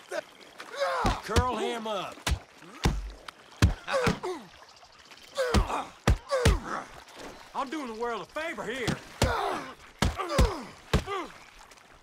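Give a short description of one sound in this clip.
Fists thud in punches.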